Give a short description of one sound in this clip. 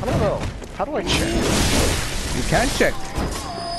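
A blade swishes and slashes through flesh.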